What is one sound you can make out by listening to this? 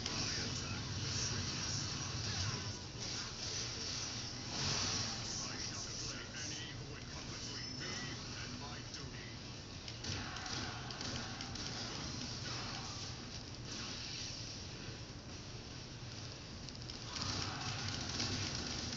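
Video game combat sounds of slashing blades and hits play loudly from a TV speaker.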